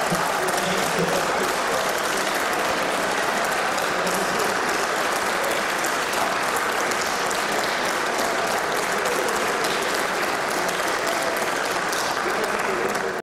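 A crowd applauds steadily in a large echoing hall.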